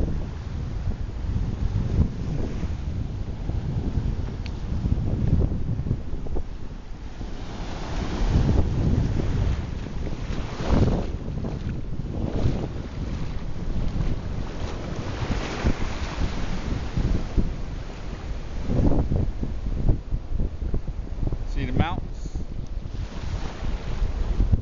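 Small waves wash up onto the shore and break.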